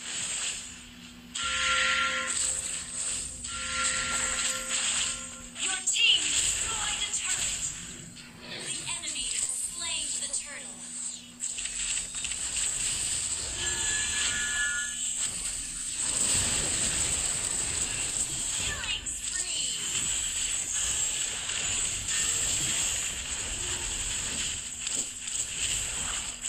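Game sound effects of spells and hits burst and clash.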